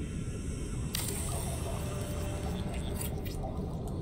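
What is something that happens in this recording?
A building tool buzzes and crackles.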